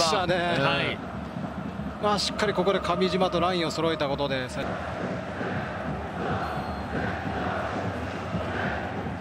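A large stadium crowd roars and murmurs steadily outdoors.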